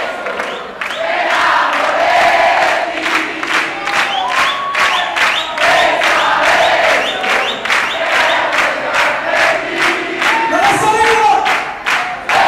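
A crowd claps in a fast, steady rhythm.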